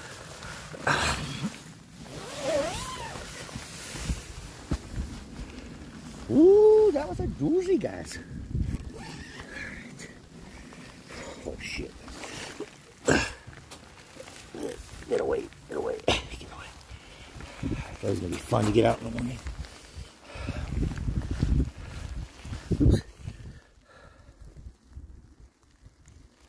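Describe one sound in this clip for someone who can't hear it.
Hailstones patter steadily on a tent and the ground outdoors.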